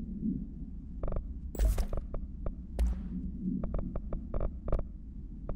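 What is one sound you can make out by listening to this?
Short soft clicks of a game menu tick several times.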